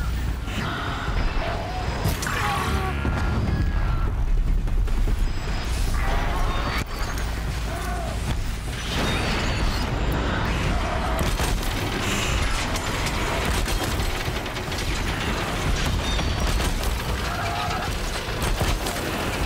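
Robot creatures screech and roar.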